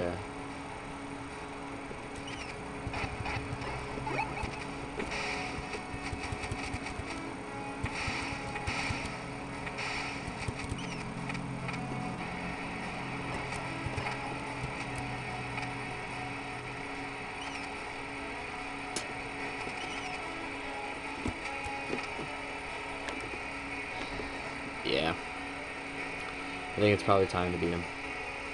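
Retro video game music plays steadily.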